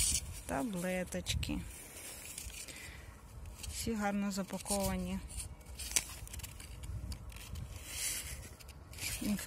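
A foil blister pack and paper crinkle and rustle as they are handled.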